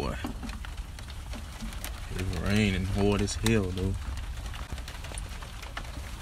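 A throttle linkage clicks softly as a hand works it.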